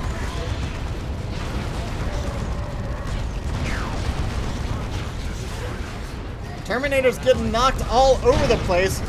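Battle explosions rumble low and steadily.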